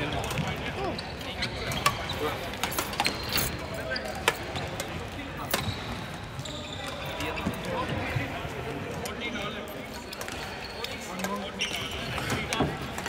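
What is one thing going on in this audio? Men talk nearby in a busy, echoing hall.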